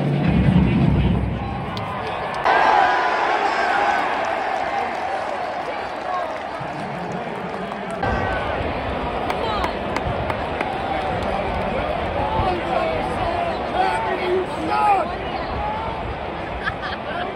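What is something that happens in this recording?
A huge stadium crowd roars and cheers outdoors.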